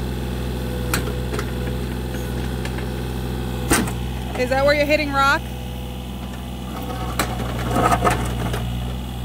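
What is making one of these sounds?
A small excavator's diesel engine hums steadily close by.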